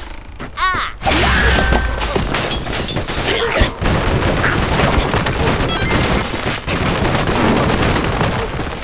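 Blocks crash and tumble down in a rapid clatter.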